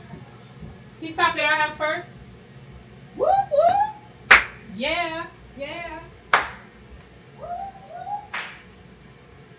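A young girl talks playfully close by.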